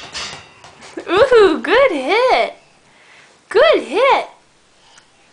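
A baby squeals loudly in rising and falling cries.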